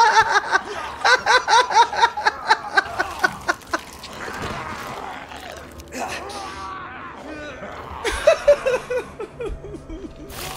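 A young man laughs loudly and screams close to a microphone.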